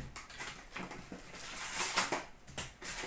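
Plastic card wrappers crinkle as they are torn open.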